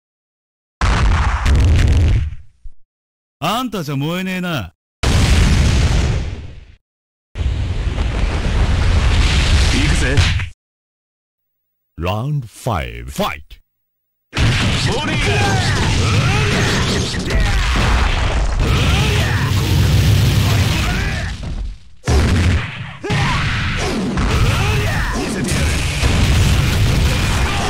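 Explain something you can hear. Heavy blows land with repeated thuds.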